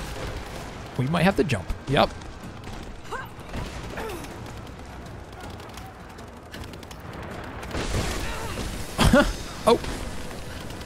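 A young woman grunts and gasps with effort.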